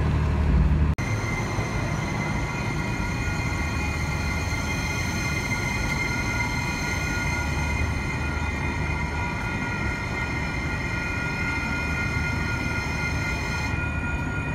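A light rail train rolls slowly past with a low rumble.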